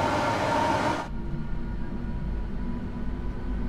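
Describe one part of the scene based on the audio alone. A train's sound turns dull and boomy as it enters a tunnel.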